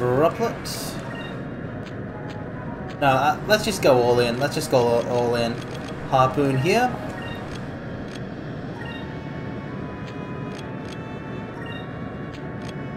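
Short electronic menu beeps chime from a video game.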